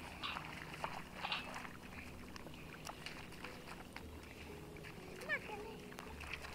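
Children's feet splash through shallow water.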